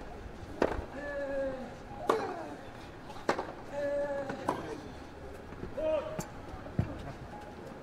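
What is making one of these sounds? A tennis ball is struck sharply back and forth.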